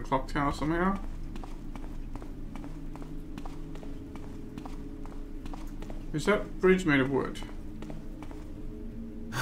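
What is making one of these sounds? Footsteps tap steadily on a hard stone floor.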